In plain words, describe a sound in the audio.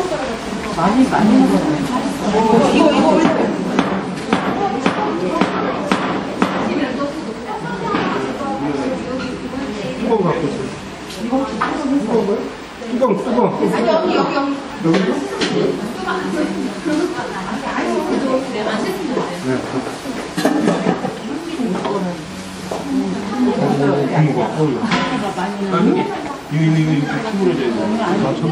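Wooden paddles scrape and knock against metal pots.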